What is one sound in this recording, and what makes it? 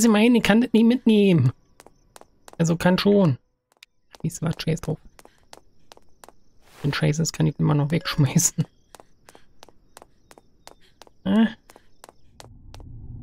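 Footsteps tap quickly on the ground.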